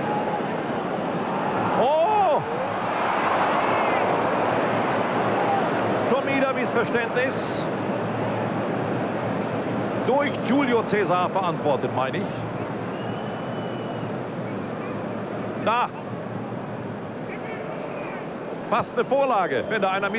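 A large stadium crowd roars and murmurs steadily outdoors.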